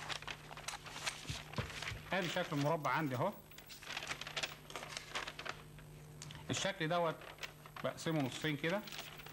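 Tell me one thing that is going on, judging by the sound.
A sheet of stiff paper rustles and crinkles as it is handled.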